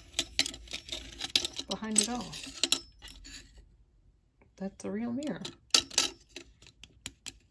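Metal plates click and clink as they are handled.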